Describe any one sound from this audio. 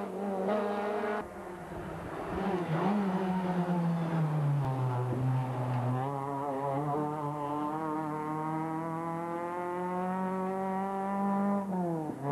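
A rally car's engine revs hard and rises and falls in pitch as cars race past.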